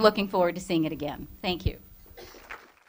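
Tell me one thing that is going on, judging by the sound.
An older woman speaks with animation into a microphone.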